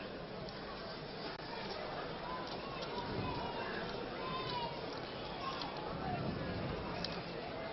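A horse's hooves clop on the track.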